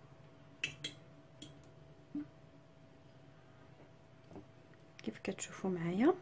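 Hands toss cooked spaghetti in a glass dish with soft, sticky squelches.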